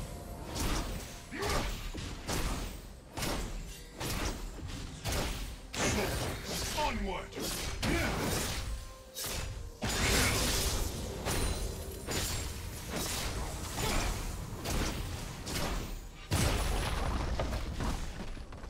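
Spell effects and weapon hits crackle and clash in a fast video game fight.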